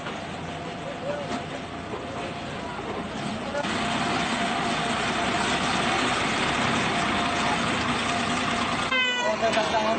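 A truck engine rumbles and idles nearby.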